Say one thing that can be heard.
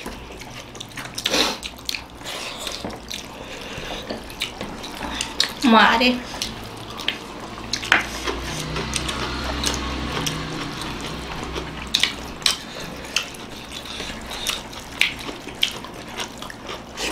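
People chew food and smack their lips close by.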